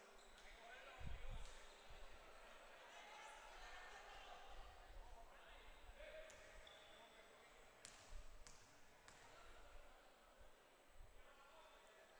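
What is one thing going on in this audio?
A basketball bounces on a hardwood court.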